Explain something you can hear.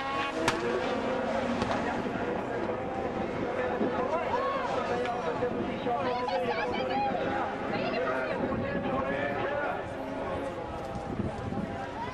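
Racing car engines roar and rev as cars speed past.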